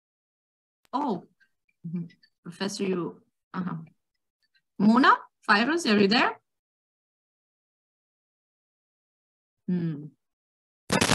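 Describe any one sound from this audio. A young woman speaks over an online call, with pauses.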